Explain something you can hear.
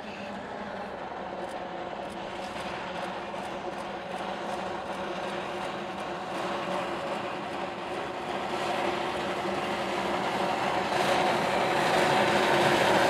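A steam locomotive chuffs steadily as it approaches, growing louder.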